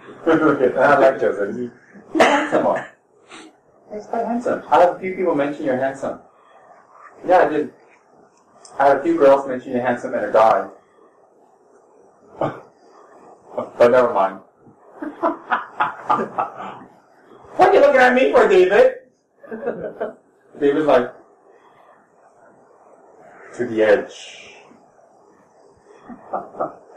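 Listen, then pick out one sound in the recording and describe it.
A man speaks calmly and slowly into a close microphone.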